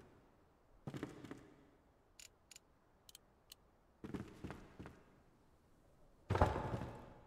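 Heavy wooden blocks thud and knock into place.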